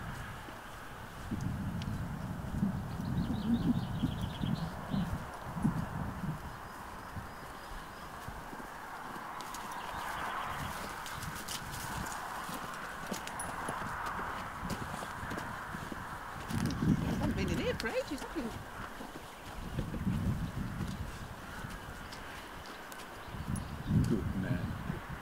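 A horse walks on soft grass with quiet hoof thuds.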